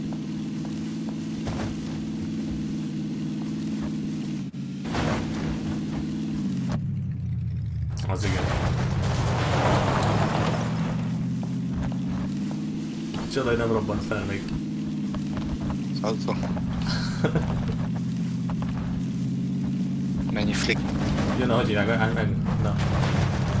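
Tyres rumble and crunch over rough ground.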